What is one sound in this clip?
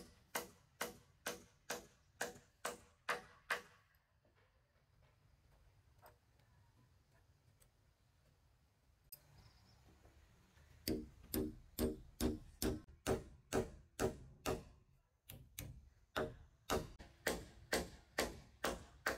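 A hammer drives a nail into a wooden beam.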